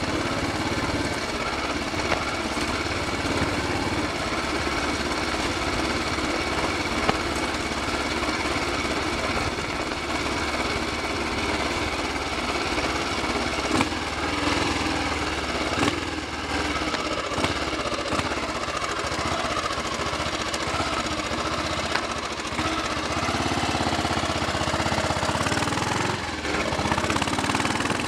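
Wind buffets past the motorcycle as it rides.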